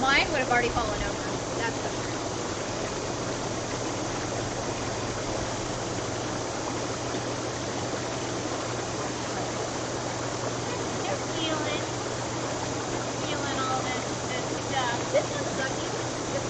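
Water bubbles and churns steadily in a hot tub.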